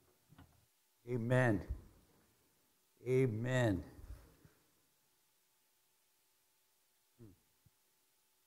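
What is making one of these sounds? A man speaks slowly and with emphasis into a microphone, pausing between phrases.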